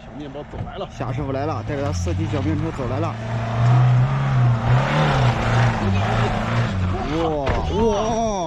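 A van engine roars as it climbs a dirt slope.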